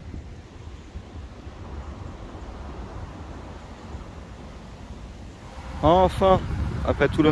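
Wind blows outdoors with a low rumble.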